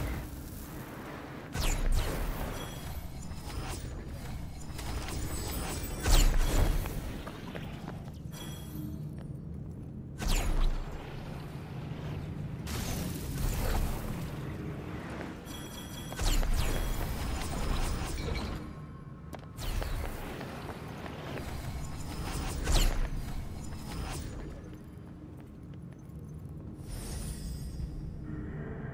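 Footsteps patter quickly over rock.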